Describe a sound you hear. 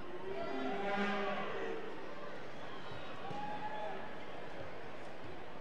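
A large indoor crowd murmurs in an echoing arena.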